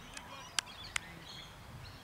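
A cricket bat strikes a ball with a sharp crack outdoors.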